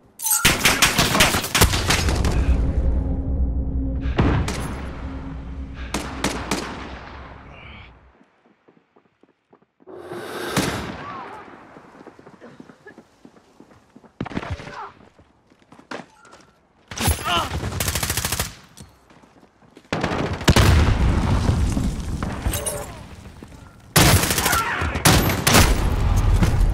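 A rifle fires rapid bursts of gunshots close by.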